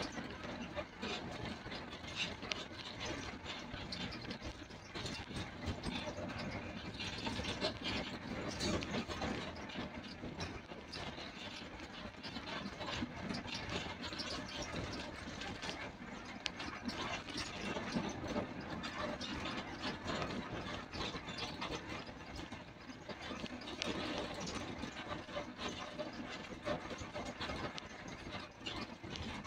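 Tyres rumble on a concrete road.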